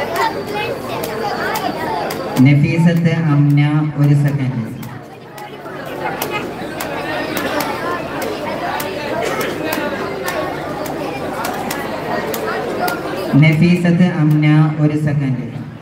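A crowd of men murmurs and calls out nearby.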